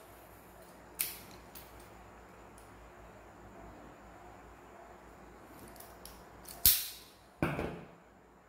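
Wire strippers click and snap on a wire.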